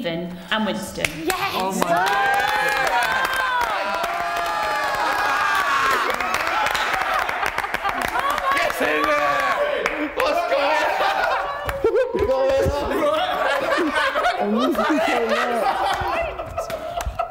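A crowd of young men and women cheers and shouts excitedly.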